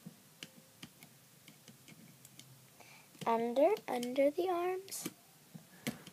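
Small plastic clicks and snaps come from rubber bands being pulled over a loom with a hook.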